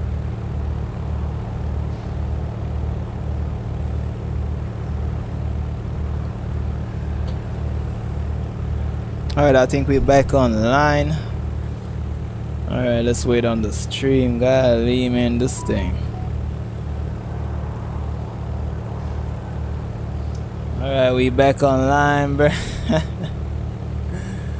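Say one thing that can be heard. A car engine idles with a steady, low, throbbing rumble.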